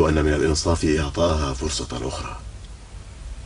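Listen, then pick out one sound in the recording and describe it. A man speaks quietly and close by.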